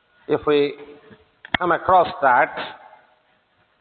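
An elderly man speaks calmly.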